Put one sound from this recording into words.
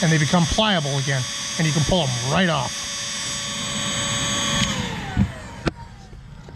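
A heat gun blows air with a steady whirring whine, then switches off and winds down.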